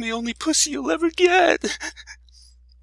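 A woman cries out in anguish.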